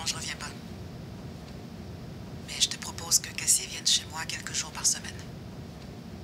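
A man speaks calmly into a phone, close by.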